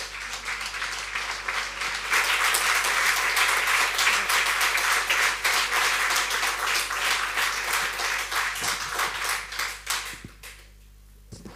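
A crowd applauds loudly in a large room.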